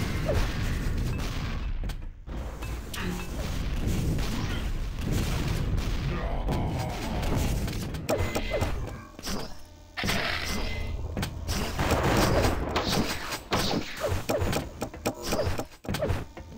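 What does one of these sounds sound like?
Game weapons fire in quick bursts.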